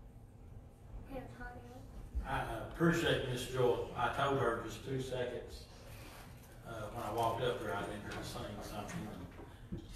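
A man speaks through a loudspeaker in an echoing hall.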